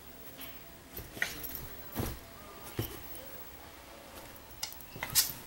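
A small terrier scrambles and thumps about on a bed.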